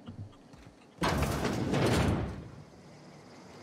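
A heavy metal door slides open with a whoosh.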